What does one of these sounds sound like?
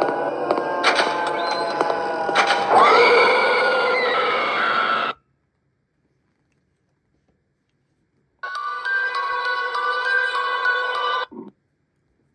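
A tense game soundtrack plays from a tablet speaker.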